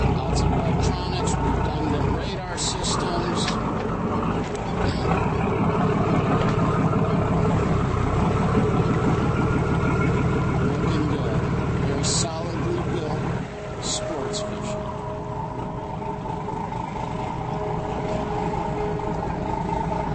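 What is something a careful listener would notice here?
A boat engine rumbles steadily close by.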